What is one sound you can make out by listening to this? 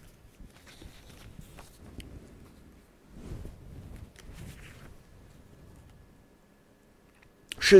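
Paper rustles as a man handles pages.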